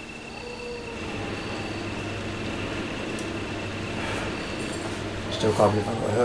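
A lift platform hums and rattles as it descends.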